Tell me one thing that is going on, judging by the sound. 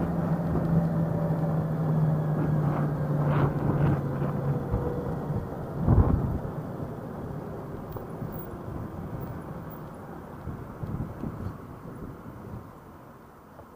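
Wind and road noise rush past, dying down as the scooter slows to a stop.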